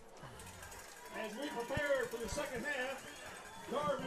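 Young women cheer and shout loudly nearby.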